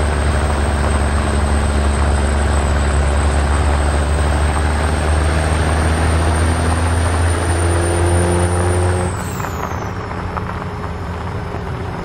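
A truck engine drones steadily, then eases off.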